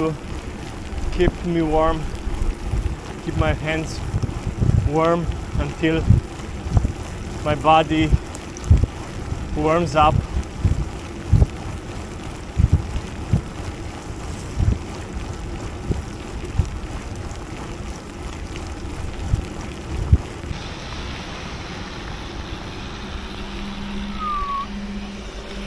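Wind buffets loudly against a moving bicycle rider.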